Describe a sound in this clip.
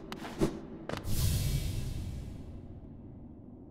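A bright shimmering whoosh swells and fades away.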